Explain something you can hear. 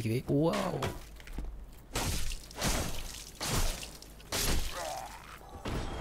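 A sword strikes with sharp clanging blows.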